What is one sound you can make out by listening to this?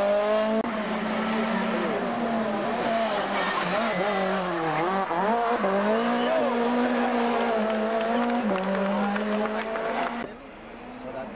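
A rally car engine roars loudly, revving up and down as the car speeds past and drives away.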